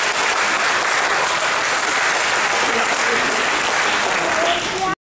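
An audience applauds loudly.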